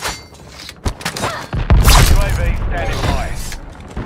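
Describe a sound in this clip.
A blade slashes in a close-range finishing blow.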